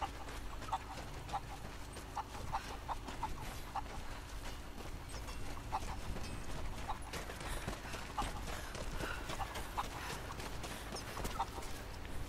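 A chicken clucks and squawks.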